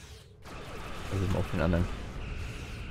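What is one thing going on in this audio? A large explosion roars and crackles.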